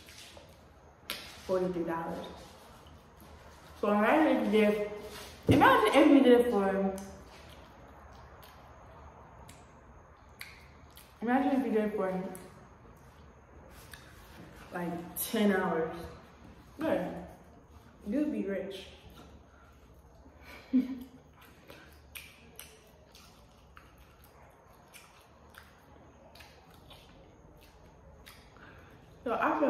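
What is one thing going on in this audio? A young woman chews food with soft, wet smacking sounds.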